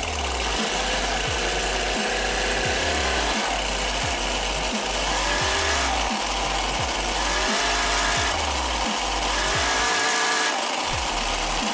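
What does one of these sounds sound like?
A small engine revs up and down repeatedly.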